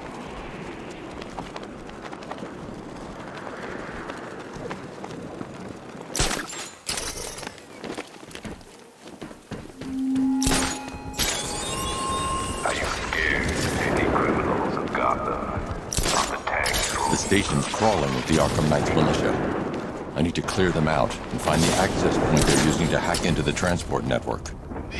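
Wind rushes past steadily during a fast glide through the air.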